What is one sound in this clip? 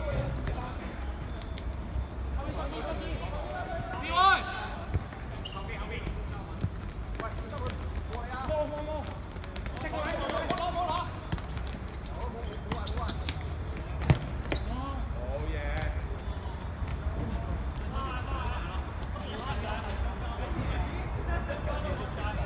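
Young men shout and call to each other across an open outdoor court.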